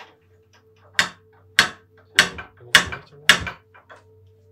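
A man knocks on a wooden door several times.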